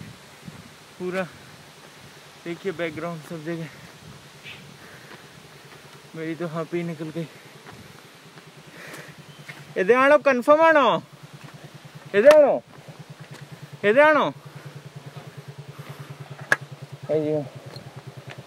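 A man speaks close by in short, calm bursts.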